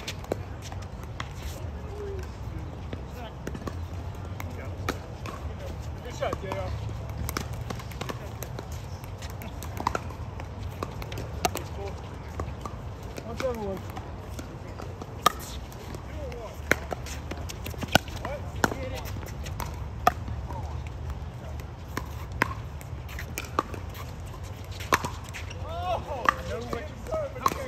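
Paddles pop sharply against a plastic ball, on and off.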